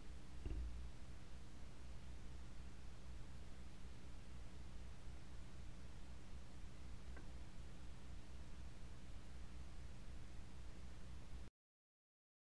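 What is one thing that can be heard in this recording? A record player's platter spins with a faint low rumble.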